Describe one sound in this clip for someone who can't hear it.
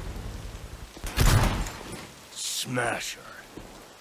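Gunshots bang sharply a few times.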